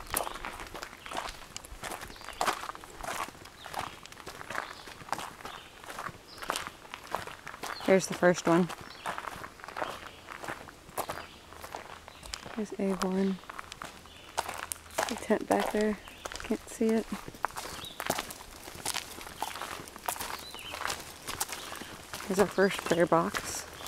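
Footsteps crunch steadily along a dirt trail.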